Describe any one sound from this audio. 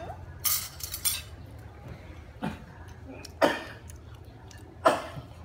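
A metal spoon clinks and scrapes against a ceramic bowl.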